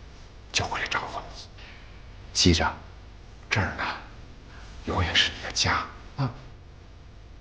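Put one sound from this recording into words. A middle-aged man speaks warmly and gently, close by.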